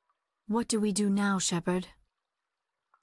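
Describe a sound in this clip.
A young woman asks a question calmly, close by.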